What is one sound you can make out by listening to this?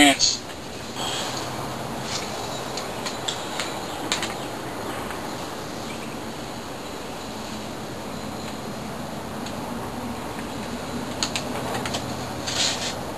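Small parts click and tap faintly.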